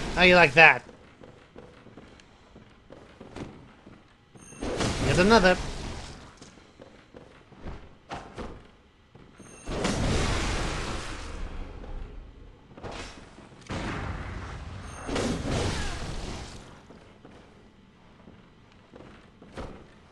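A blade swishes through the air and strikes repeatedly.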